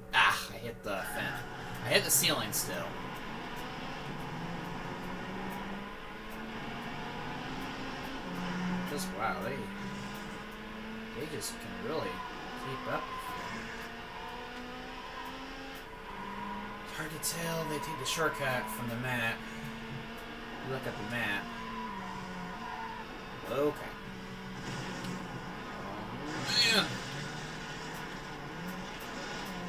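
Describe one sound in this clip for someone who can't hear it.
A racing car engine hums and revs steadily through a television speaker.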